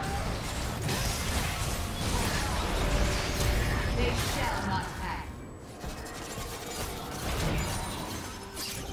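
Magic spells burst and crackle in a fantasy battle.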